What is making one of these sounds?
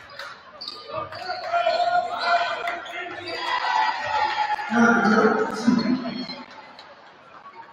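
A crowd cheers in an echoing gym.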